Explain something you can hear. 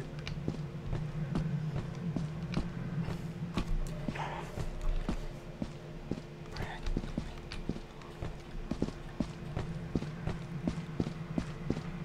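Footsteps thud at a steady walking pace on hard ground.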